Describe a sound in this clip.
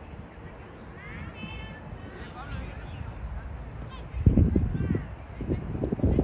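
Children shout and call out in the distance across an open field.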